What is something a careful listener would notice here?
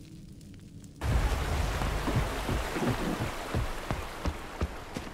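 Footsteps rustle through grass outdoors.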